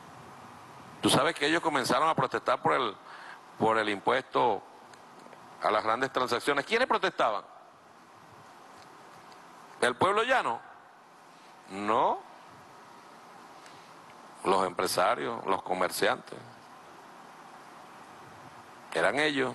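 A middle-aged man speaks forcefully into a microphone, in bursts with pauses.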